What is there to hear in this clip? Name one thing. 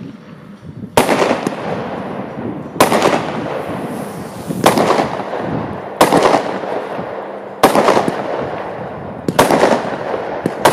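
Fireworks bang loudly, one after another, with booming echoes.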